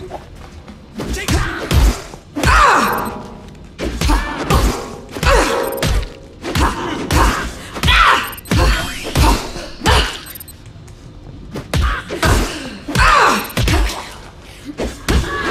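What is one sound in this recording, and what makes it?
Creatures shriek and snarl as they are struck.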